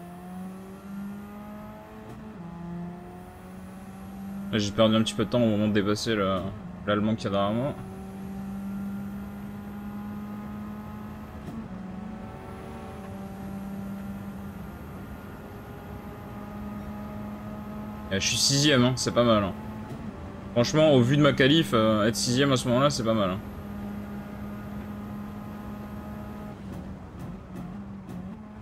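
A racing car engine revs and climbs through the gears.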